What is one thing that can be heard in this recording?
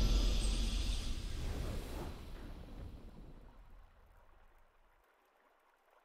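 A triumphant game fanfare rings out and slowly fades away.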